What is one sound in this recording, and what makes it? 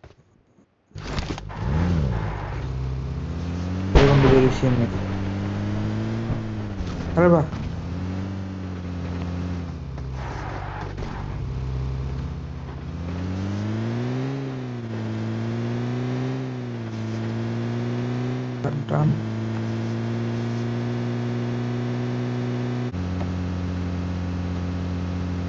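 A vehicle engine drones steadily, rising and falling in pitch as it drives.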